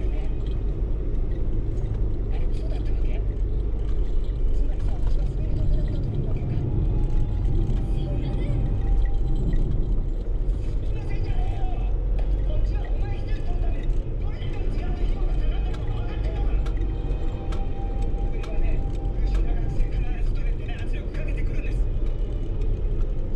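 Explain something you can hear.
Small items rattle and clink inside a moving bus.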